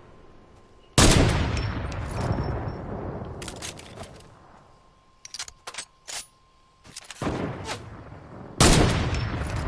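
A sniper rifle fires with a loud, echoing boom.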